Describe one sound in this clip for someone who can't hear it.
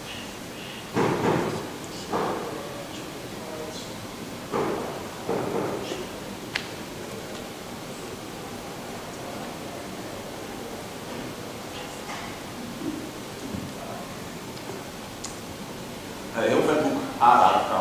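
A man speaks in short bursts in a large echoing room.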